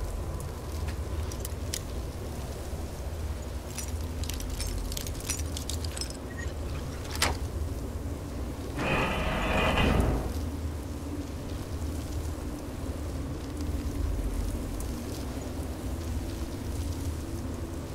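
Wind blows steadily in the background.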